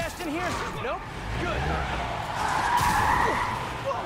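Glass shatters as a car window breaks.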